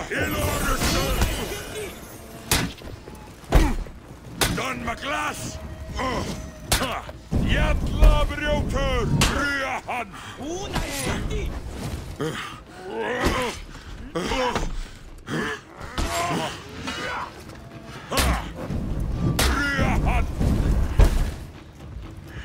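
Swords clash and ring with sharp metallic hits.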